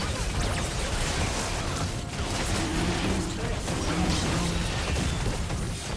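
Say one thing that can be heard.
Game spell effects whoosh and crackle in a fight.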